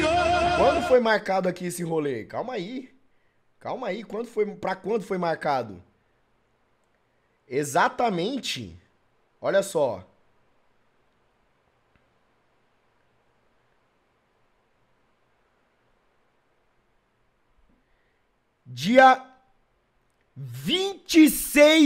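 A young man talks with animation close to a microphone, in short bursts.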